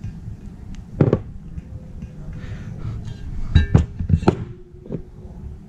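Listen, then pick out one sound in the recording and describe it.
Metal parts clunk and knock against a hard surface.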